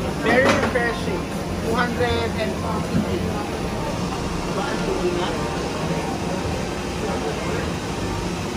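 A woman laughs and talks loudly nearby.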